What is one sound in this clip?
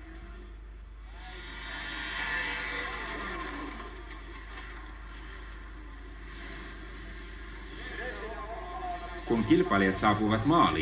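A snowmobile engine whines as it races past over snow.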